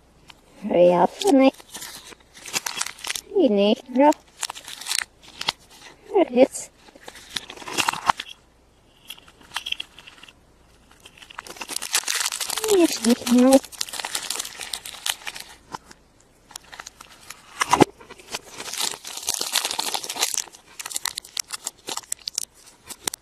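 A plastic capsule clicks and knocks as it is handled.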